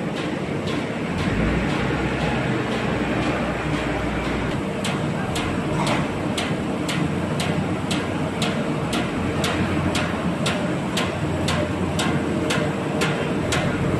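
A paper sheeter machine runs with a steady rumble and hum of rollers.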